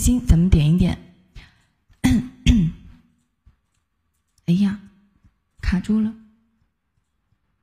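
A young woman speaks softly into a close microphone, in short phrases.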